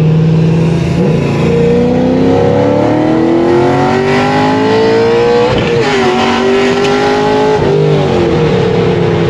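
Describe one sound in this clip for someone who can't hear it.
A car engine revs up hard, rising in pitch and dropping with each gear change.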